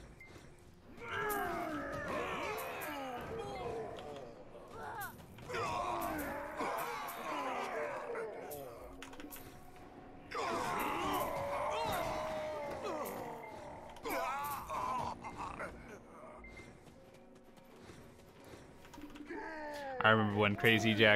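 Weapon strikes and magic blasts crack and whoosh in a game fight.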